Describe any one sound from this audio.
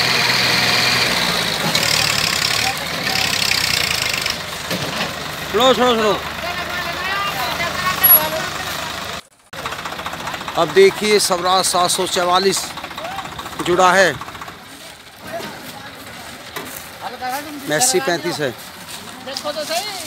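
A tractor engine idles and rumbles steadily outdoors.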